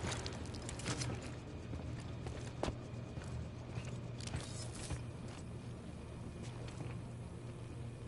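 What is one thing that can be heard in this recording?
A low hum drones steadily in an echoing space.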